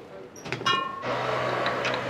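Plastic hangers clack and rattle together.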